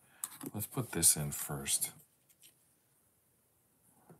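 A paper page rustles as it is turned.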